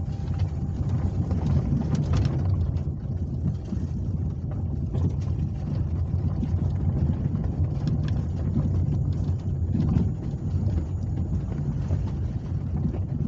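Tyres roll along a bumpy road.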